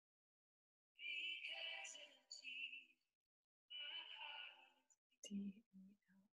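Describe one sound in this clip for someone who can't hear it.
A middle-aged woman talks calmly over an online call.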